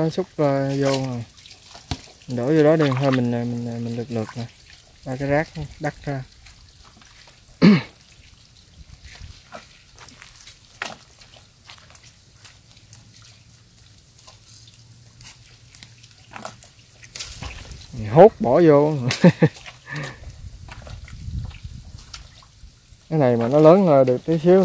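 Hands squelch and scoop in wet mud.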